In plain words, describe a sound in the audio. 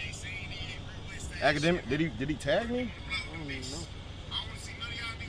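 A young man talks excitedly up close.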